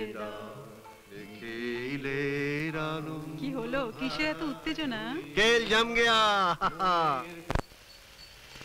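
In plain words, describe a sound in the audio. An elderly man talks with animation nearby.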